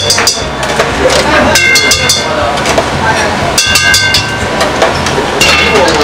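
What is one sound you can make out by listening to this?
Metal utensils scrape and clang against a wok.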